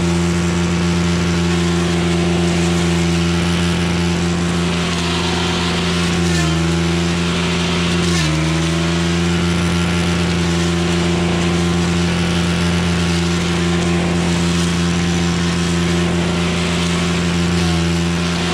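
A petrol brush cutter engine drones loudly and steadily, dipping briefly in pitch now and then.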